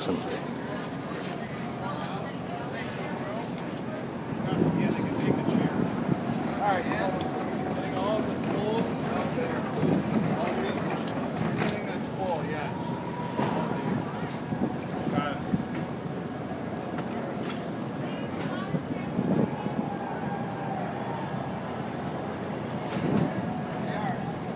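A crowd of men and women chatters at a distance outdoors.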